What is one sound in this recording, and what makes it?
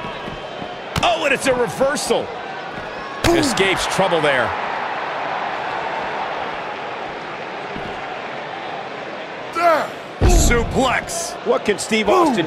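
Heavy thuds of wrestlers hitting and slamming each other land in bursts.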